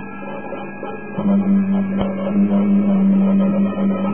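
Brass cymbals clash in a marching procession.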